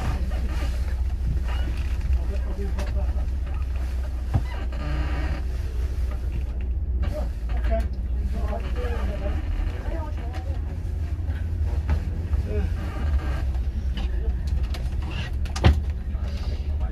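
Wind buffets the microphone outdoors in a steady low rumble.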